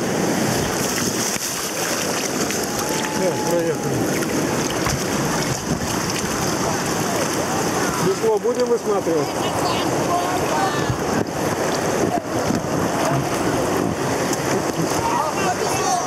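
White water rushes and splashes loudly close by.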